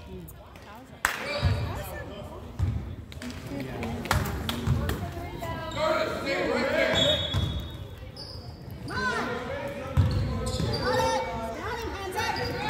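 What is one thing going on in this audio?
A basketball bounces with dull thuds in an echoing gym.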